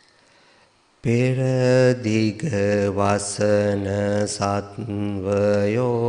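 A man chants in a deep, steady voice through a microphone.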